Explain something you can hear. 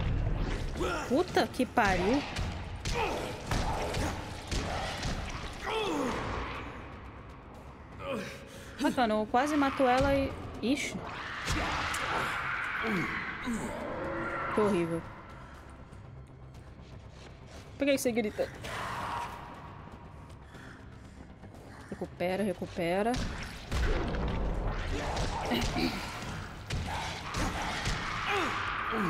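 A young woman talks and exclaims close to a microphone.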